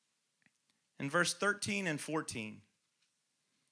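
A young man speaks briefly and calmly into a microphone.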